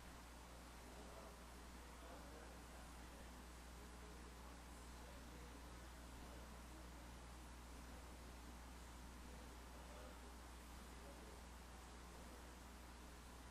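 Men and women murmur quietly, far off, in a large hall.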